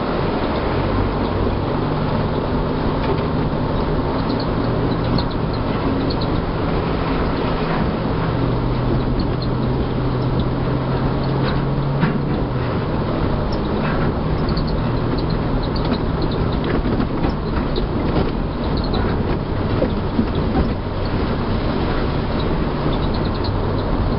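A vehicle bumps and rattles over rough ground.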